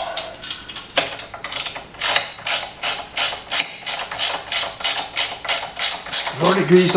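A ratchet wrench clicks rapidly as a bolt is tightened.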